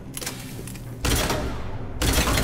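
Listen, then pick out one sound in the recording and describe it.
A rifle fires loud, rapid bursts of shots.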